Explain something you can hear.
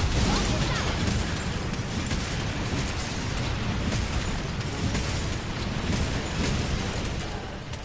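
Flames and lava roar with a deep, steady rumble.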